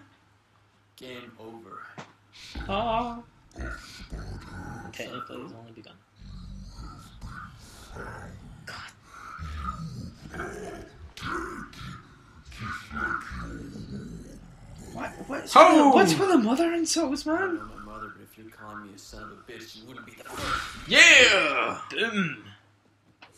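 A deep, distorted male voice speaks menacingly, close by.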